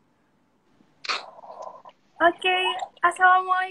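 A young woman speaks over an online call.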